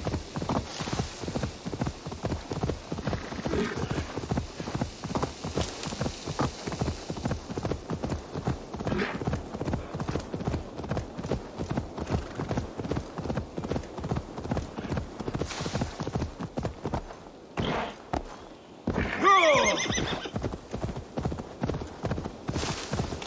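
A horse gallops with hooves thudding on grass.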